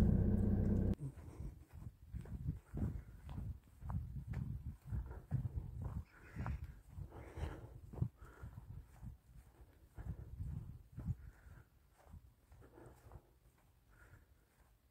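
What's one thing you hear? Footsteps fall on a grassy path.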